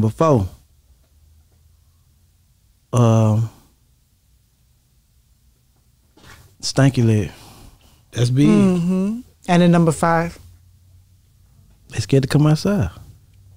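A man speaks into a close microphone in short, animated bursts.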